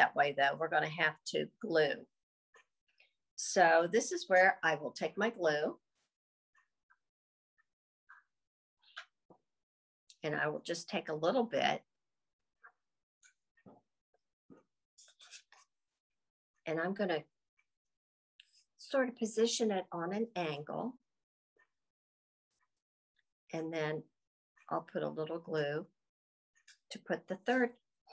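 A woman speaks calmly and clearly, close by, with pauses between phrases.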